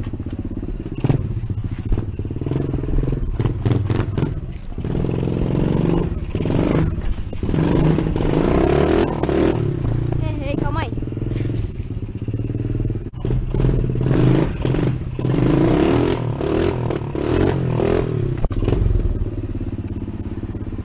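A small four-stroke mini dirt bike engine revs hard in bursts.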